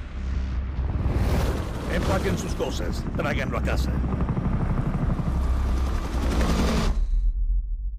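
Helicopter rotors thump loudly as several helicopters fly past.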